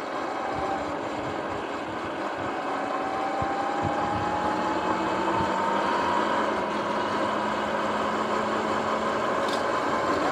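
Bike tyres hum on smooth pavement.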